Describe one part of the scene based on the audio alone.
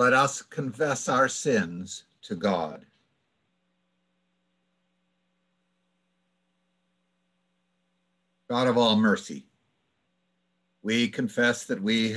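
An elderly man speaks calmly over an online call, pausing between phrases.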